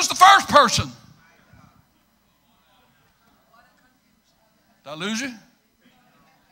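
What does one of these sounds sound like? A middle-aged man preaches loudly and with passion through a microphone.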